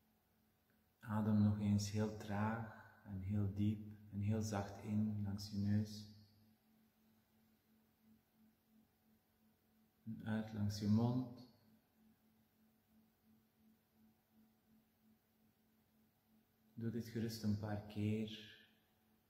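A man speaks calmly and slowly, close to a microphone.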